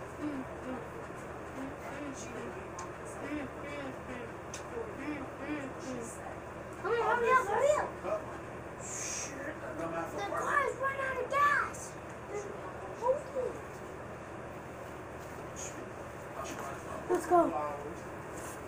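A child talks quietly nearby.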